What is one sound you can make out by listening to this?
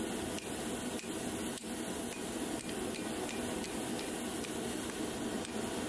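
A hammer strikes a metal punch against an anvil with sharp, ringing blows.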